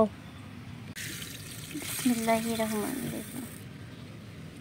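Rice grains pour into water with a soft rushing splash.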